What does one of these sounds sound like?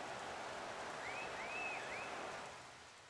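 Fans whistle shrilly in a stadium crowd.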